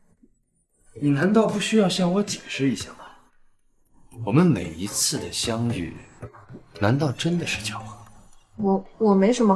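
A young man speaks in a firm, questioning voice close by.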